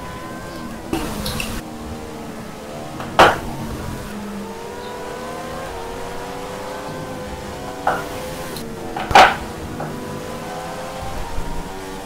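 Racing car engines whine at high revs, rising and falling as gears change.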